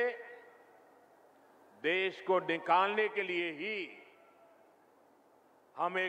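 An elderly man gives a speech through a microphone, speaking in measured phrases with pauses.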